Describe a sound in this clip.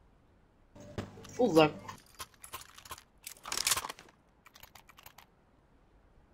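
Soft clicks sound as weapons are picked from a menu.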